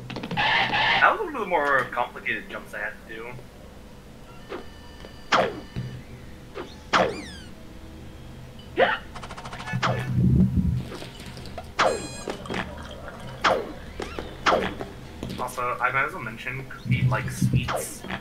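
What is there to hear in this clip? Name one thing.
Video game sound effects chime and whoosh in quick bursts.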